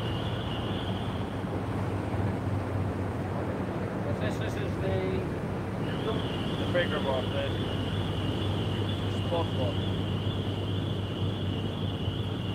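A ferry's engine hums low and steady across the water.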